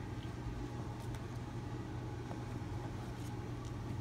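Books slide and tap against each other as they are handled.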